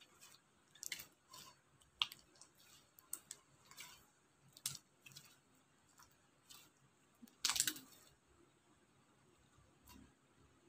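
Glossy slime squishes and crackles as hands squeeze and knead it.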